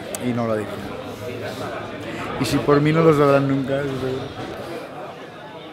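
A middle-aged man speaks cheerfully close by.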